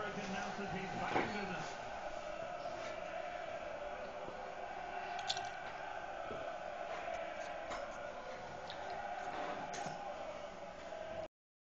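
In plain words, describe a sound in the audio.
A large stadium crowd roars steadily, heard through a television speaker.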